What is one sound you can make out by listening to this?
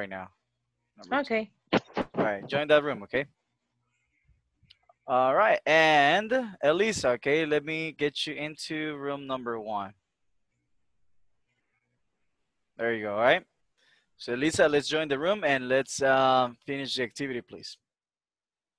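A man speaks calmly through an online call, in bursts with pauses.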